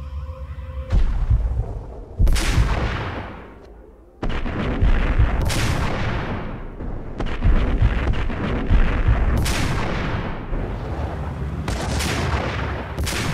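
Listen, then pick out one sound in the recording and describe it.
A rifle fires loud, booming shots that ring out and fade.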